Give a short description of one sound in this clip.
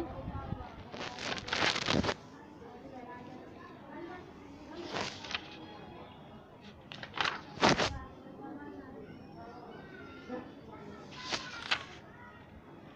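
Pages of a paper workbook rustle as they are turned.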